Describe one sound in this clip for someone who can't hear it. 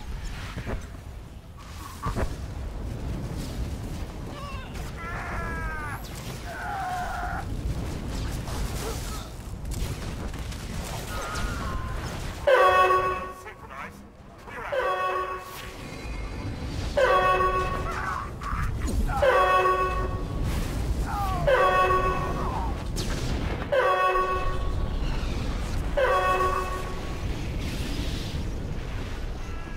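Energy blades hum and crackle as fighters clash.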